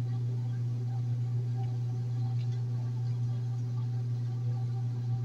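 A washing machine drum spins with a steady low hum.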